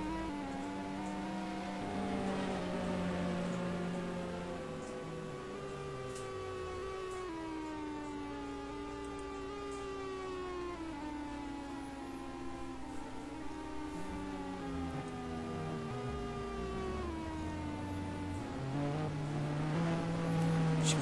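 A racing car engine drones and whines, its pitch sliding down and up.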